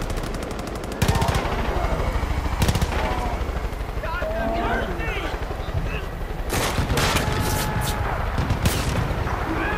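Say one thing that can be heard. A shotgun fires loud, booming shots.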